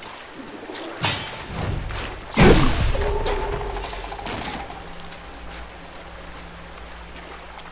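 A stream of water rushes steadily.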